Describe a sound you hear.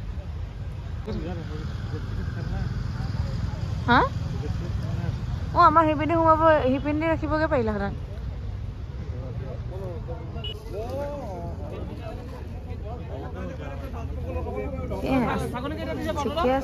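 Men and women chatter in a crowd around, outdoors.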